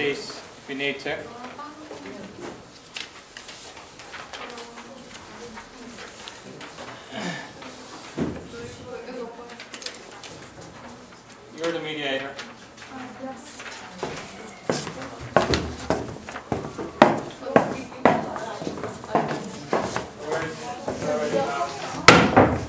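Several people talk casually nearby.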